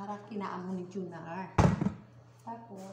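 A metal pot lid clanks.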